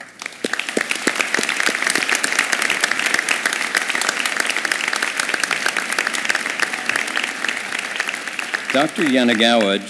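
A large audience applauds in a big hall.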